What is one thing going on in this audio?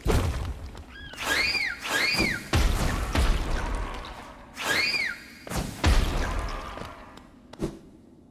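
Loud booming explosions and blasts ring out in a video game.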